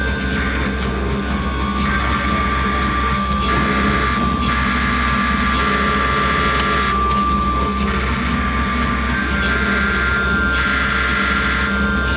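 Steady electronic tones hum and shift in pitch.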